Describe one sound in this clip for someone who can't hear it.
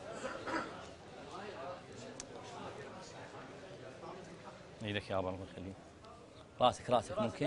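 A crowd of men murmurs and chatters.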